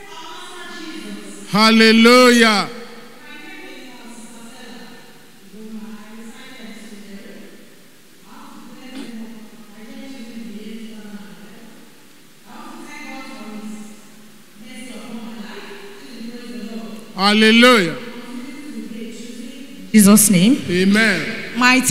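A woman speaks with emotion into a microphone, heard through loudspeakers.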